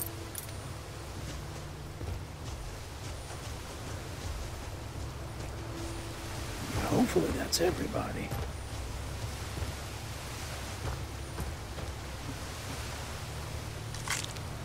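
Footsteps crunch softly on gravel and wooden boards.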